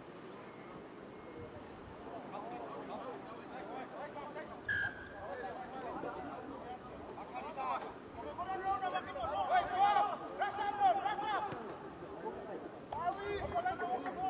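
Men call out to each other across an open playing field.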